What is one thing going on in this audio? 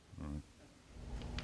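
An elderly man speaks briefly through a microphone.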